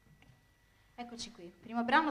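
A young woman speaks calmly into a microphone, announcing.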